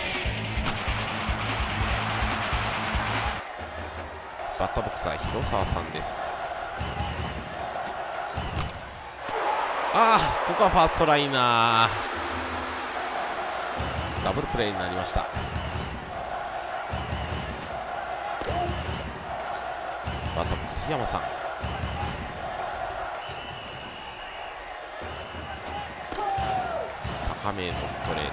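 A large stadium crowd cheers and chants steadily.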